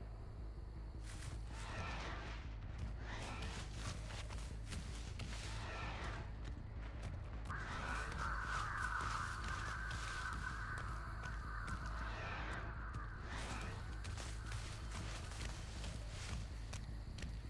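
Footsteps rustle quickly through tall dry reeds.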